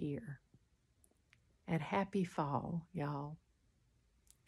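An elderly woman speaks warmly and close to a microphone.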